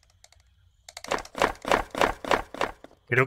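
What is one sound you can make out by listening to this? Wooden tiles flip over with a rapid clicking clatter.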